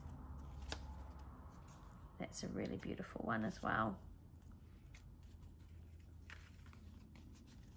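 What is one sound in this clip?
Stiff paper cards rustle and flap as they are handled.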